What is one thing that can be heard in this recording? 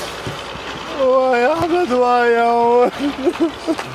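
A young man wails and sobs.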